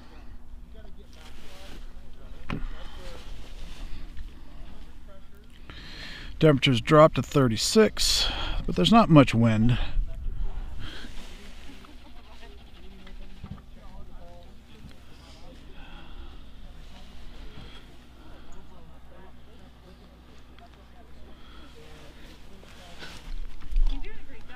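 Men talk quietly at a distance outdoors.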